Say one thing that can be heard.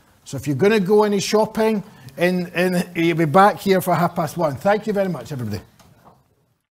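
A middle-aged man speaks with animation into a microphone in a large room.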